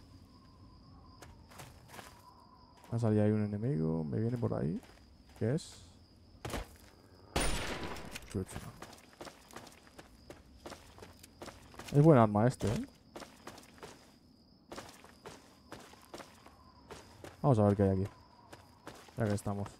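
Footsteps crunch over rough, rocky ground.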